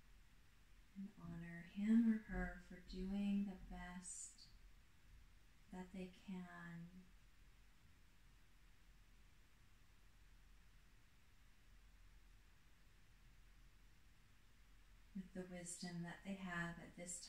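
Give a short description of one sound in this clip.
A woman speaks softly and calmly, in short phrases with long pauses.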